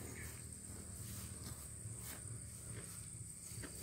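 A small child's footsteps swish through tall grass.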